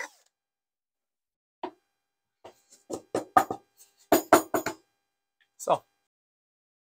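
Wooden boards knock and clatter as they are handled.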